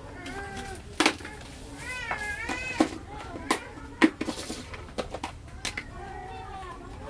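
Clothes rustle and thump softly as they are handled.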